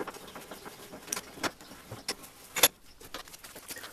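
A bench vise handle is turned, clinking as it tightens on a steel coil.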